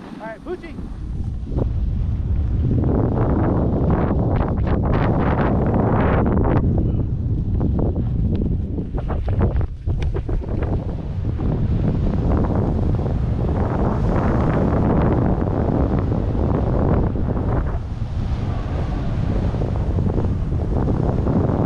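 Wind roars and buffets loudly against the microphone.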